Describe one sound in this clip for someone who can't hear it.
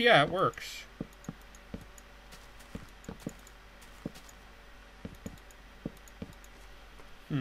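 Wooden blocks knock softly as they are placed, one after another.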